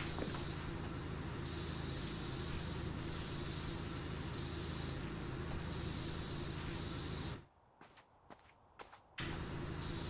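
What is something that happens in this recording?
A pressure washer sprays water in a steady hissing rush.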